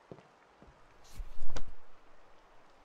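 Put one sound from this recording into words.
Papers rustle as a folder opens.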